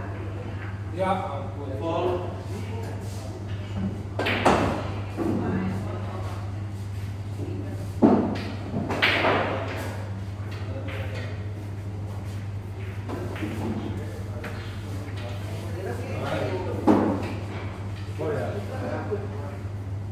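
Young men talk casually nearby, with a slight echo.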